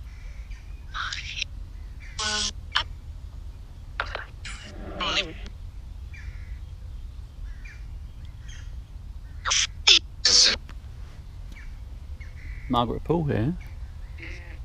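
A small electronic device gives out brief snatches of garbled voices.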